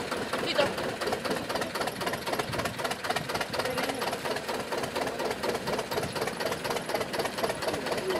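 A helicopter's engine runs as its rotor slowly turns, with a rapid, steady pulsing beat.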